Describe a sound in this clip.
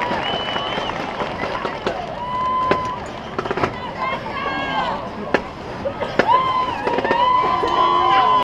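A crowd cheers from outdoor stands.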